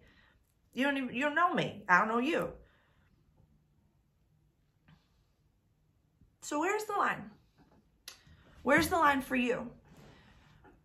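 A young woman speaks calmly and close by, with pauses.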